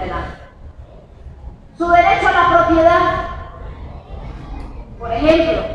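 A woman speaks with animation through a microphone and loudspeaker in an echoing hall.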